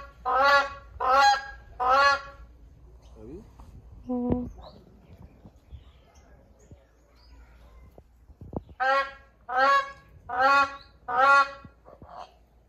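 A crowned crane gives loud, repeated honking calls close by.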